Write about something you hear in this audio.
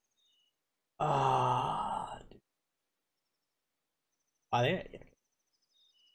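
A young man speaks with animation close to a microphone.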